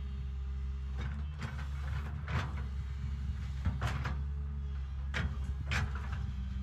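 Rocks and soil scrape and clatter as an excavator bucket digs.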